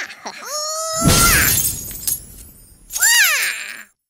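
Coins burst out and shower down with a jingling crash.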